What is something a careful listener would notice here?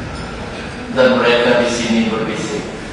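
A young man speaks loudly into a microphone, heard through loudspeakers.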